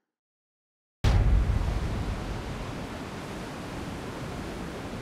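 Wind rushes loudly and steadily past.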